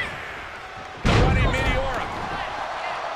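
A body slams hard onto a wrestling ring mat with a heavy thud.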